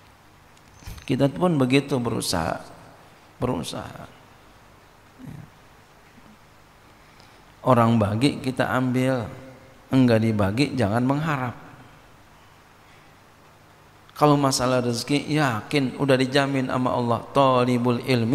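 A man speaks steadily through a microphone, with pauses between phrases.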